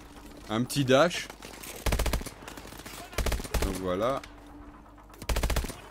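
A rifle fires a few sharp, loud shots.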